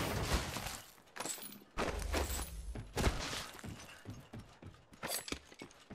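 Short clicks sound as items are picked up.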